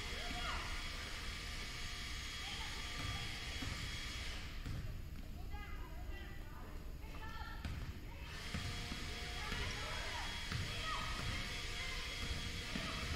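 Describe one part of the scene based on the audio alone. A basketball bounces with thuds that echo through a large hall.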